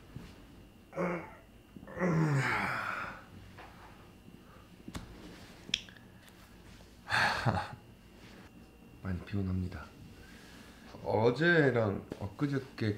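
A young man speaks close by, casually, in short bursts.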